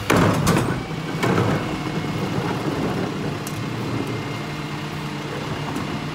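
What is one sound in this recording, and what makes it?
A plastic bin's wheels roll over pavement.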